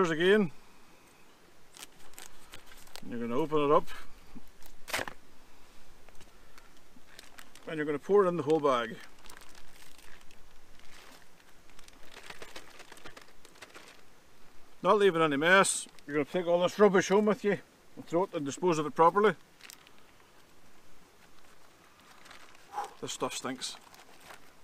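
A man talks calmly close by.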